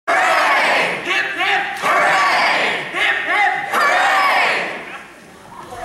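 A young man sings loudly on a stage, heard from the audience.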